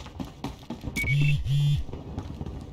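A short electronic chime sounds twice.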